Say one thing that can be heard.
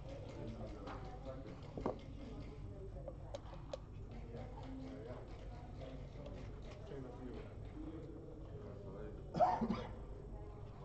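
Checkers click against a wooden board.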